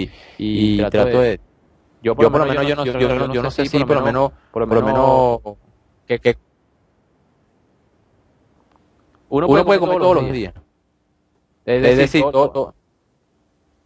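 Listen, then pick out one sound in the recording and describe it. A young man speaks with animation through a headset microphone on an online call.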